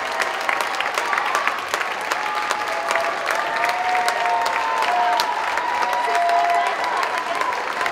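A large choir of young children sings together in a big echoing hall.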